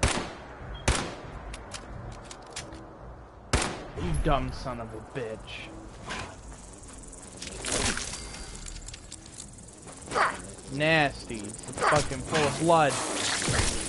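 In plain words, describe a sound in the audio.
A rifle fires several sharp shots.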